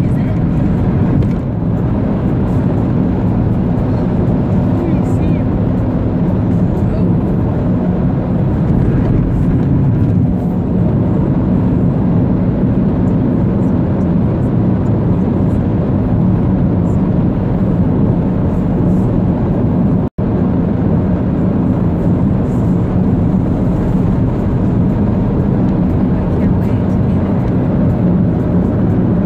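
A car engine hums with steady road rumble.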